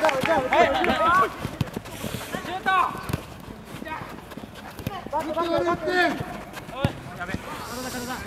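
Young players shout and call to each other outdoors.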